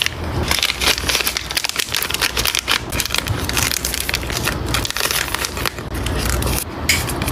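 Plastic packaging crinkles and rustles between fingers.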